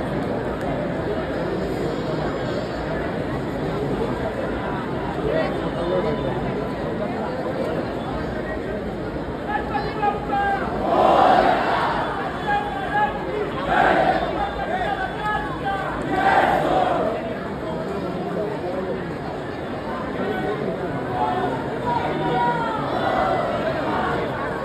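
A large outdoor crowd cheers and shouts steadily.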